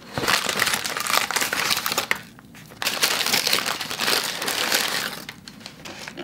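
Plastic wrappers crinkle close by.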